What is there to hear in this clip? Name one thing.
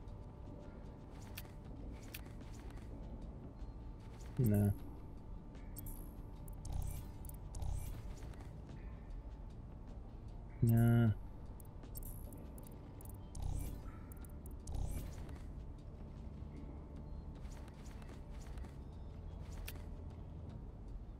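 A young man talks quietly into a close microphone.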